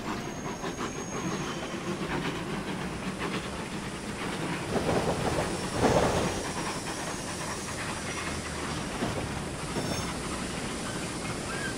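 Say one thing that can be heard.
Train wheels clatter over rail joints as wagons roll by.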